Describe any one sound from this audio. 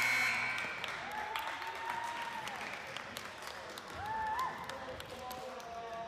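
A ball thuds and bounces on the floor in an echoing hall.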